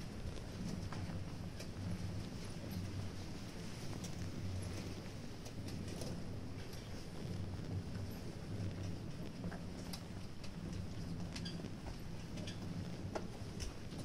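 A crowd murmurs quietly in the open air.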